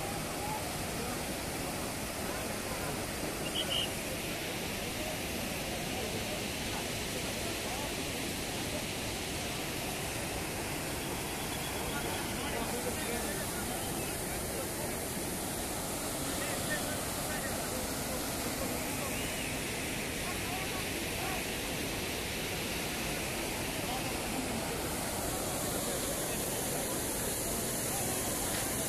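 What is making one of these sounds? Water rushes loudly over a weir.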